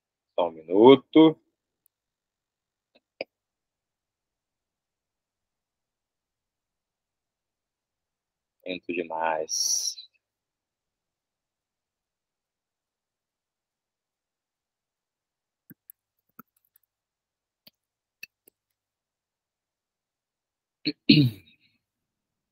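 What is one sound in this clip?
A man speaks calmly in short phrases through an online call microphone.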